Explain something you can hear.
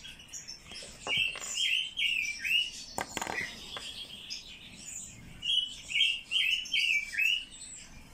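A bird call whistles in short, quick chirps.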